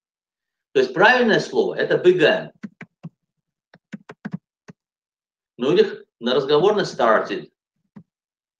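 A middle-aged man speaks calmly through a microphone on an online call.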